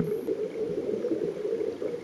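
Air bubbles burble underwater.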